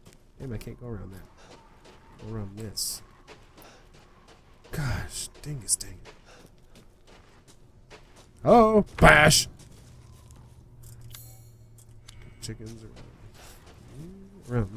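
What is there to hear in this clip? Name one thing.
A young man talks with animation into a microphone, close up.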